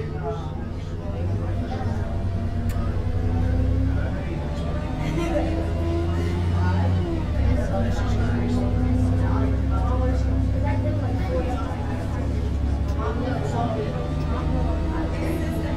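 A bus engine drones low and steady, its pitch rising and falling slightly.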